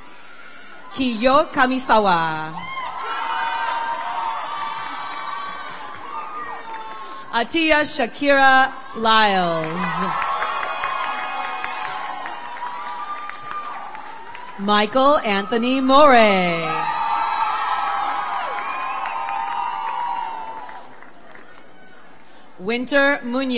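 People in an audience whoop and shout loudly.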